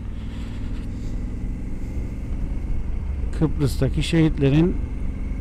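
A motorcycle engine hums steadily at low pitch.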